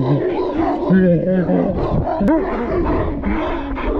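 Dogs bark nearby.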